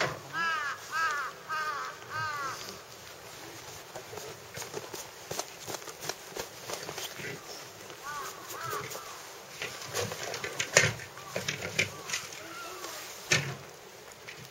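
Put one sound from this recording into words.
A large animal's paws crunch and scrape in snow.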